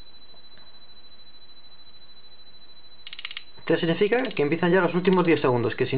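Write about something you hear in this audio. An alarm keypad emits a steady, high-pitched beep.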